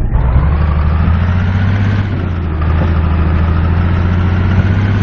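A truck engine rumbles steadily at low revs.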